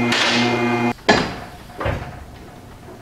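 A car lift clunks as it settles into place.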